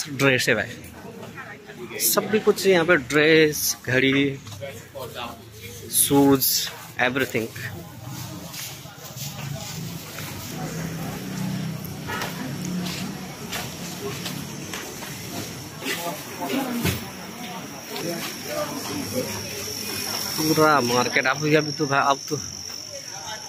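A crowd of shoppers chatters outdoors in a busy street.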